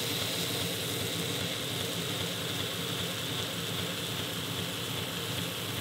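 A metal ring grinds against a sanding belt with a steady hiss.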